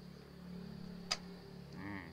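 A plastic cable tie clicks sharply as it is pulled tight.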